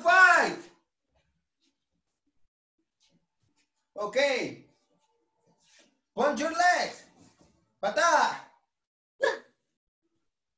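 A young man shouts short bursts with energy through a microphone, with quiet pauses between them.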